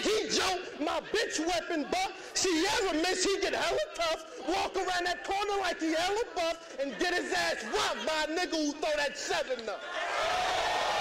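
A man raps forcefully to a crowd, close by.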